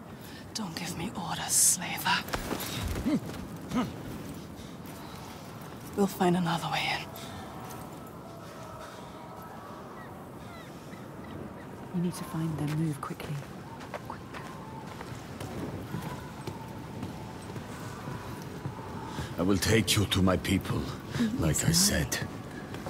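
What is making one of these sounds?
A young man speaks sharply and close by.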